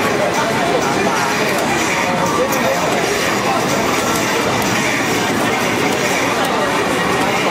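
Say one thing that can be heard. Arcade fighting game music and effects play loudly from a cabinet speaker.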